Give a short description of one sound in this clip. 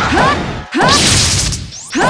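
A laser beam fires with a sharp electronic zap.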